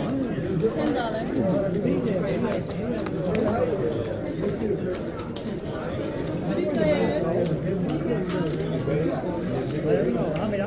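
Poker chips clatter and click as a hand shuffles them.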